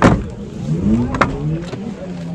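A car door handle clicks as the door is pulled open.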